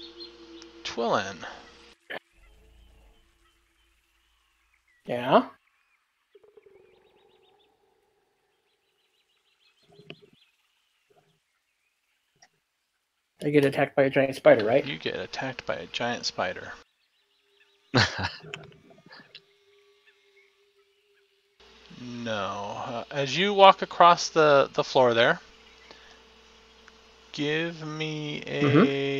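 Several men talk and laugh over an online call, heard through their microphones.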